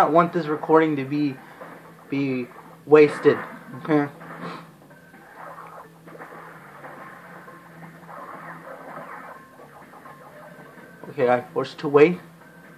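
Video game music and effects play from a television speaker.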